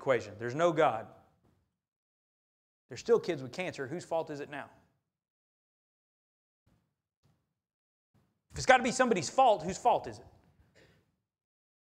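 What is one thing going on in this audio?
A man preaches through a microphone, speaking with emphasis in bursts separated by pauses.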